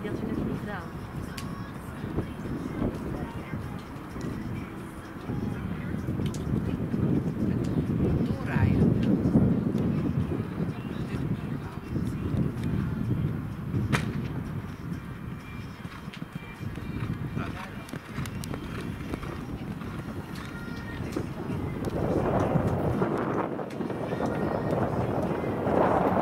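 A horse's hooves thud on sand as it canters.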